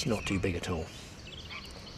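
An elderly man speaks calmly and close into a microphone.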